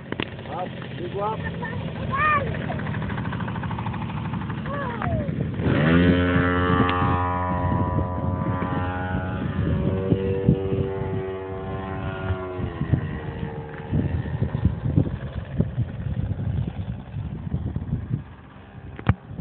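A small model plane engine buzzes loudly, its pitch rising and falling as it takes off and flies overhead.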